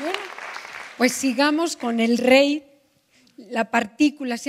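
A woman speaks into a microphone over loudspeakers in a large hall.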